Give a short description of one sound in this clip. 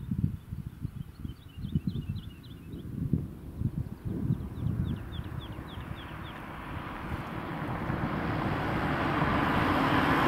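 Wind buffets and rumbles loudly outdoors.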